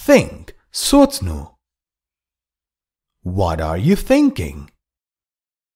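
A man reads out short phrases clearly through a microphone.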